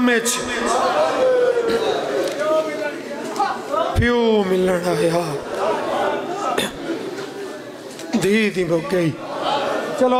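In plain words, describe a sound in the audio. A man chants in a melodic, sustained voice through a microphone and loudspeakers.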